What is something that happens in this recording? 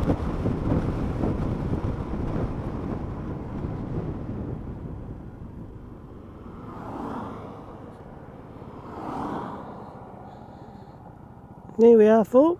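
Wind roars loudly against a moving motorcycle and fades as it slows down.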